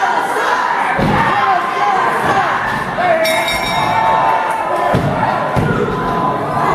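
A wrestler thuds onto a wrestling ring canvas.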